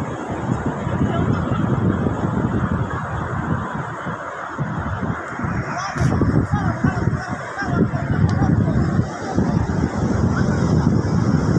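Wind buffets loudly outdoors in gusts.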